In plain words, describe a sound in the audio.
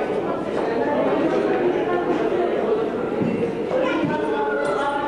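Several adult men and women talk at once nearby, in a busy chatter.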